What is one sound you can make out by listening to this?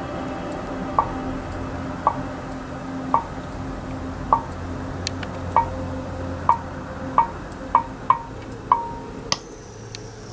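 A gas igniter clicks repeatedly with sharp sparking snaps.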